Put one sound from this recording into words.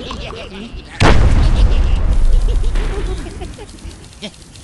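Wooden blocks crash and clatter as structures collapse.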